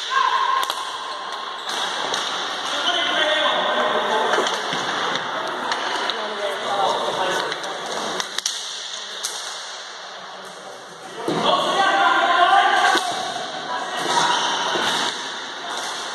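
Sticks clack against a ball and against each other on a hard floor.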